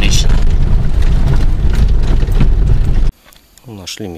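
A car engine rumbles loudly as the car drives over a bumpy dirt track.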